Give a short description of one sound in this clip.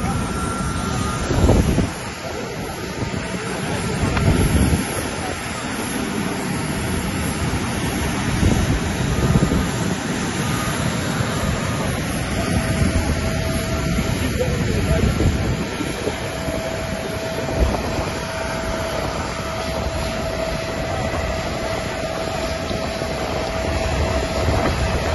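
Wind blows into a microphone outdoors.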